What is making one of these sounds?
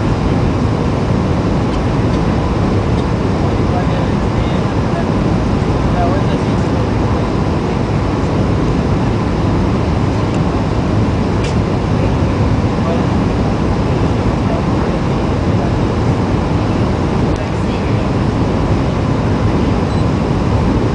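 Jet engines roar steadily through an airliner's cabin.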